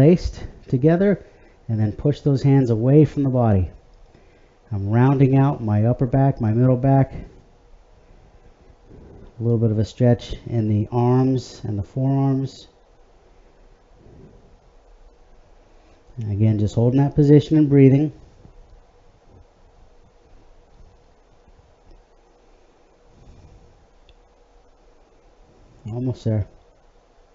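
A middle-aged man speaks calmly and clearly, close by, in short bursts with pauses.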